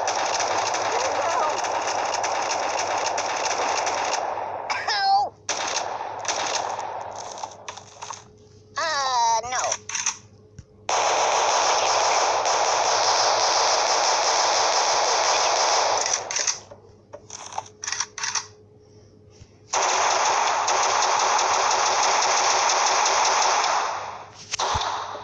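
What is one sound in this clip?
Rapid gunfire rattles in long, steady bursts.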